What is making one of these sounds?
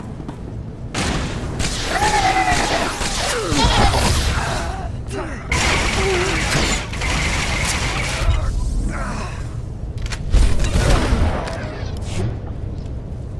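Laser blasts and fighting sounds burst out loudly.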